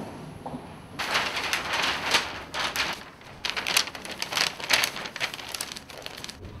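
Large sheets of paper rustle and crinkle as they are folded.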